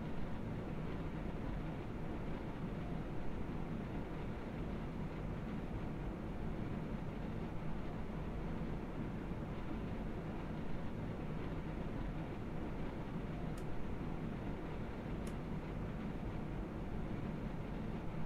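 A train engine hums with a steady low rumble.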